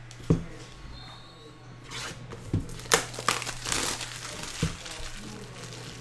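Cardboard and plastic wrapping rustle as a box is handled.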